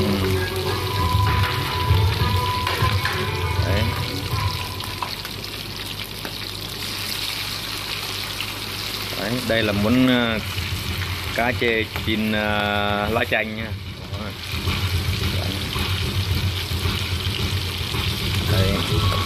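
Food sizzles and crackles in hot oil in a frying pan.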